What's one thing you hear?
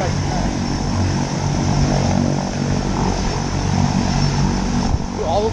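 A propeller plane's engines drone steadily in the distance.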